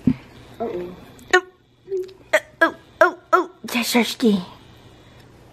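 A young woman speaks with animation, close by.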